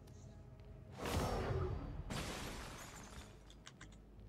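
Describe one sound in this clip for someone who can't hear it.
A smoke grenade bursts and hisses.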